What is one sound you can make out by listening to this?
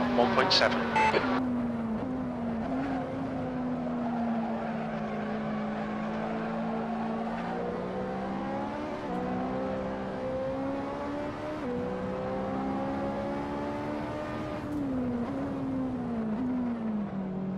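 A racing car engine hums steadily and shifts pitch as it changes gears.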